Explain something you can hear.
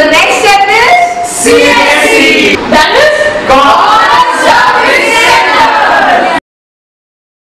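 A group of children sing together close by.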